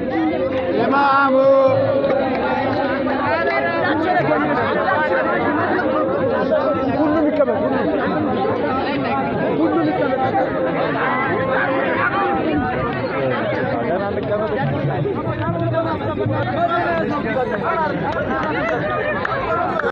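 A large crowd of men and women chatters loudly all around, outdoors.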